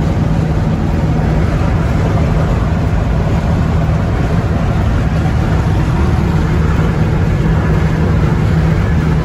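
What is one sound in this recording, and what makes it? Tyres roar on the road at speed.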